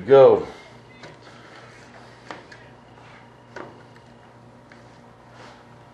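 Paper crinkles and rustles as it is handled.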